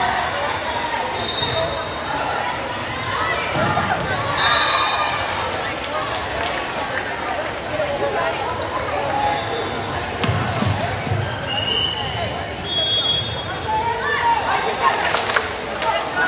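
Young women chatter and call out in a large echoing gym.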